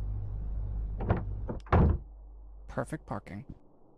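A car door clunks shut.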